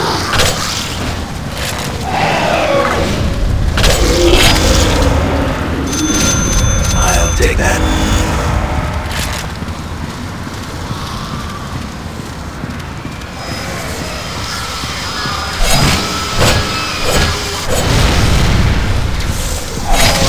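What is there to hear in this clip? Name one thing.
Blades swish and slash through flesh with wet thuds.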